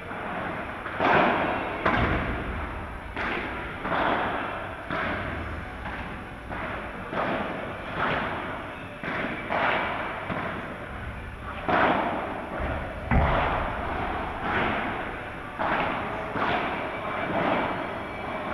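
Paddle rackets strike a ball with sharp pops, back and forth.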